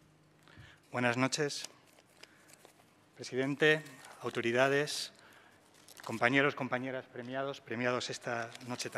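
A man speaks calmly into a microphone over loudspeakers.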